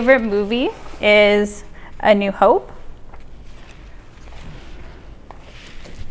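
Paper rustles as it is laid down.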